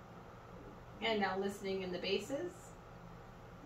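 An older woman speaks calmly nearby.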